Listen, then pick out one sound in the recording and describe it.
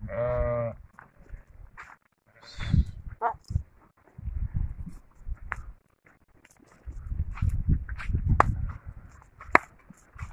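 Hooves shuffle and patter on dry dirt as a flock of sheep moves about.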